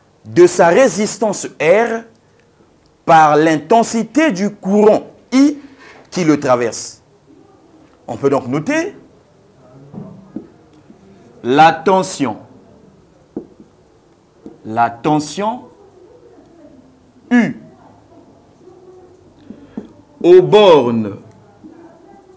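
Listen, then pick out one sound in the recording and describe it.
A man lectures calmly into a close microphone, in short phrases with pauses.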